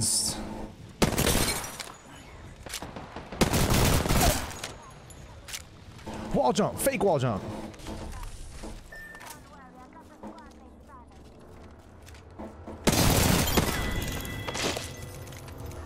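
Gunfire from a game bursts in short, loud volleys.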